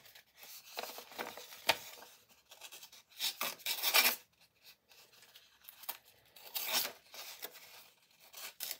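A sharpened knife slices through a sheet of paper in rasping strokes.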